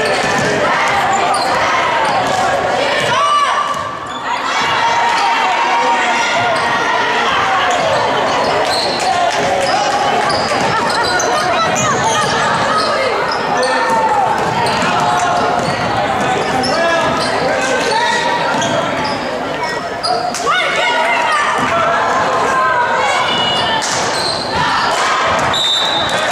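A crowd of spectators talks and cheers in an echoing gym.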